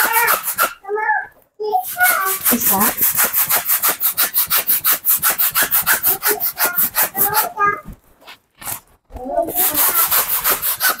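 A hand pump rapidly puffs air into a balloon.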